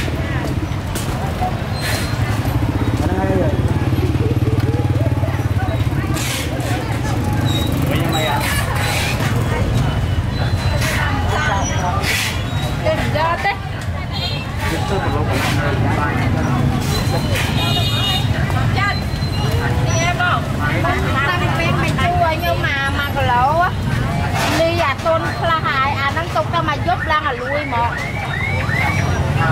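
A busy crowd of men and women chatters all around outdoors.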